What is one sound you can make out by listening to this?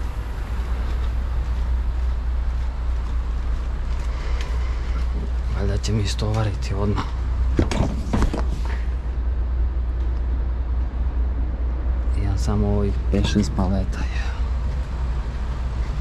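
A truck's refrigeration unit hums steadily and low.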